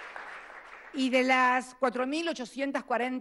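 A woman speaks firmly into a microphone over loudspeakers.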